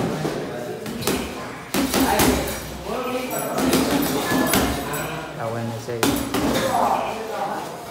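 Boxing gloves thud against a heavy punching bag.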